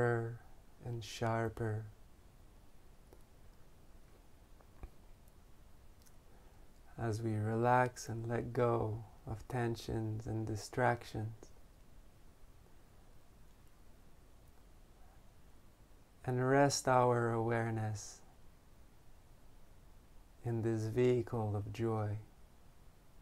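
A man speaks slowly and calmly close to a microphone, with long pauses.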